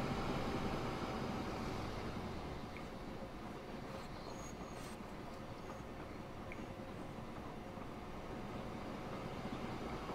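An electric freight train rumbles along the rails.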